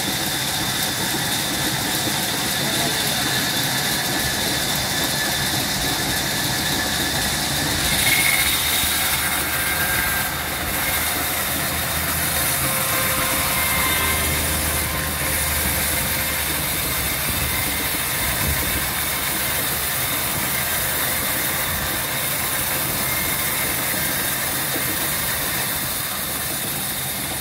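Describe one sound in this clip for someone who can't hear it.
A band saw blade cuts through a log with a rasping hiss.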